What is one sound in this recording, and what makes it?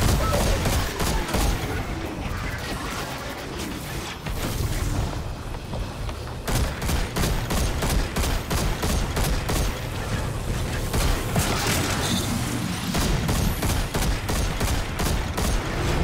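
A rapid-fire gun shoots in fast bursts.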